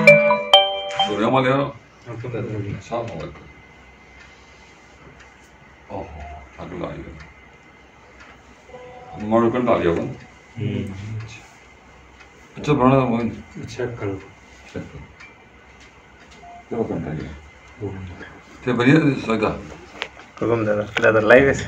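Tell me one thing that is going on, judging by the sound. An elderly man speaks calmly and slowly, close by.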